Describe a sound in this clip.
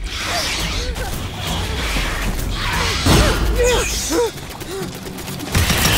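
Alien creatures screech and hiss close by.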